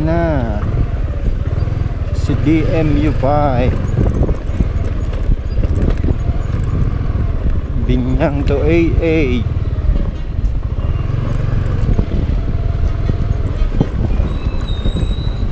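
A motorcycle rattles and bumps over rough ground.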